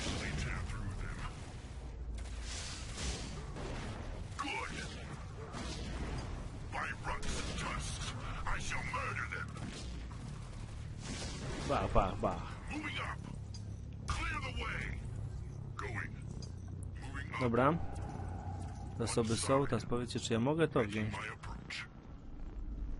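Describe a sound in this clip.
Weapons fire and energy blasts crackle in a busy fight.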